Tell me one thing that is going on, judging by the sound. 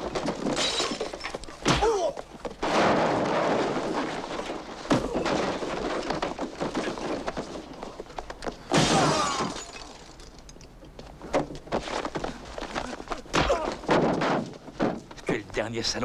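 Blows and scuffling thud during a fight.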